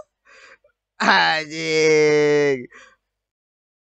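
A young man laughs close into a microphone.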